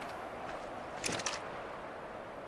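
A gun fires a burst of loud shots.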